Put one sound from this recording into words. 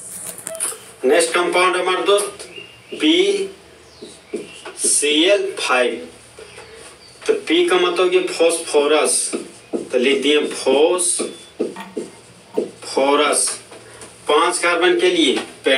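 A young man speaks calmly and clearly, explaining nearby.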